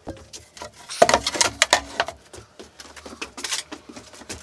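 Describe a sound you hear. A heavy wooden panel slides and thumps onto a table.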